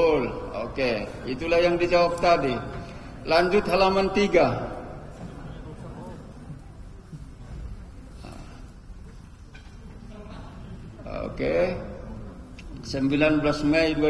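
A man speaks steadily through a microphone, with long pauses.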